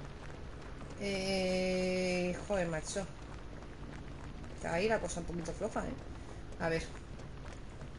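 A young woman speaks into a headset microphone with animation.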